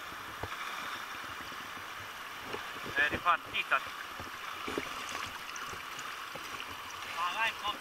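Water splashes around a man wading in a river.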